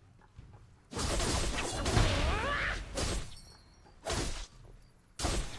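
Game sound effects of spell casts and hits burst out loudly.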